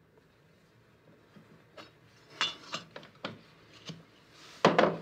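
Small glass objects clink softly on a table.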